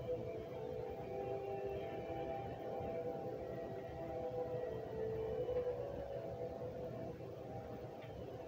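Soft music with long held notes plays through a loudspeaker.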